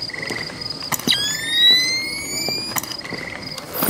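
A night vision device whines as it switches on.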